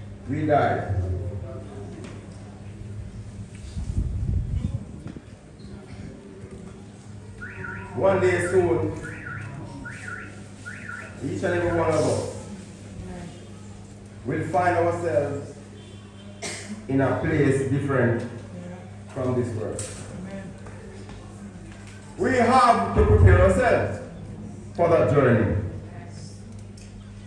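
A man speaks slowly and solemnly into a microphone over loudspeakers, in phrases with pauses.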